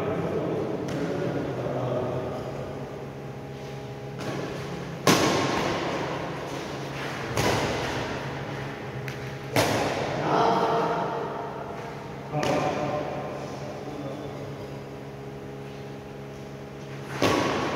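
Shoes squeak and scuff on a hard floor.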